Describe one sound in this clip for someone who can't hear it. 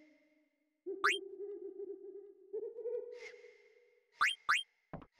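Short electronic blips sound as a menu cursor moves.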